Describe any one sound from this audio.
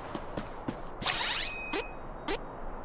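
A bright chime sweeps up as a menu opens.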